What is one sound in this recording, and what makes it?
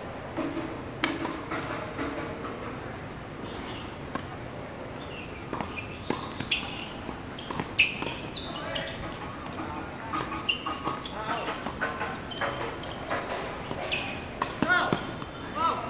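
Tennis rackets strike a ball outdoors in a rally.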